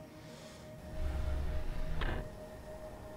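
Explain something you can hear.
A spacecraft's engines rumble low.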